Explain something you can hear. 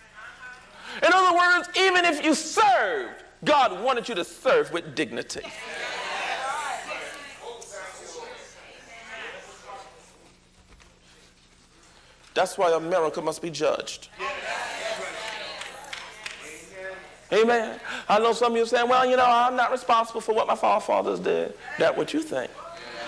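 A young man preaches loudly and with passion into a microphone, in a large echoing hall.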